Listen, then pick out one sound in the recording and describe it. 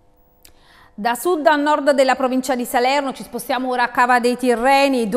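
A woman reads out the news calmly through a microphone.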